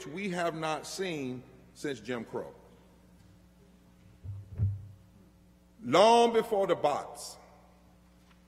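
A man speaks with passion into a microphone, his words echoing slightly in a large room.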